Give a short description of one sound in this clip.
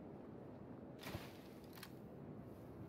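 Leafy branches rustle as someone pushes through a bush.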